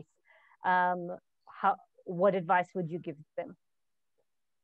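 A young woman speaks calmly over an online call.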